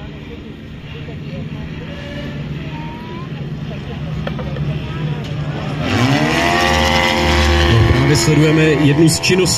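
A small propeller plane drones overhead, growing louder as its engine revs up.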